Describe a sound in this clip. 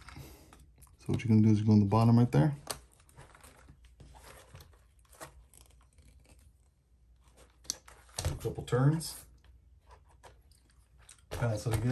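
A small screwdriver turns a screw with faint clicks.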